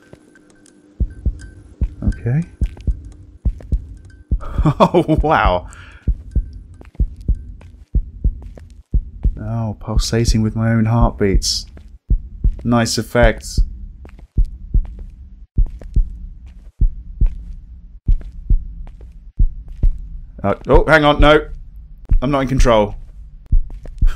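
Slow footsteps thud on a wooden floor.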